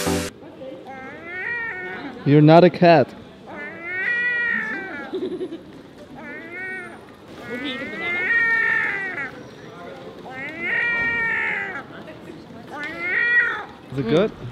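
A seagull calls loudly, in repeated cries.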